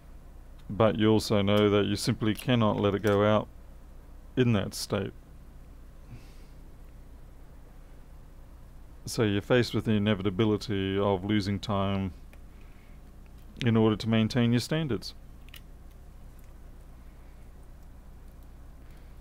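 Small parts click and rattle as they are handled.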